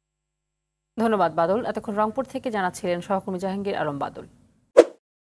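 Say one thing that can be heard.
A woman speaks calmly and clearly, as if reading the news.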